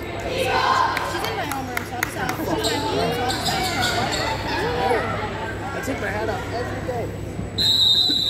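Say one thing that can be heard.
Young women chatter in a large echoing hall.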